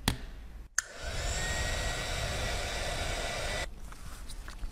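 A small suction tool hisses steadily.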